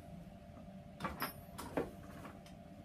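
Wood knocks lightly against a metal table.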